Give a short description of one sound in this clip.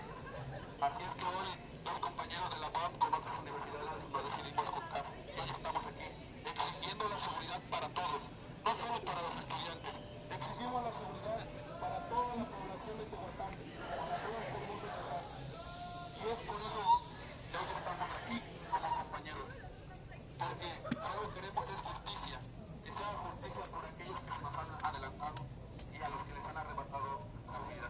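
A large crowd of young men and women chants together rhythmically outdoors.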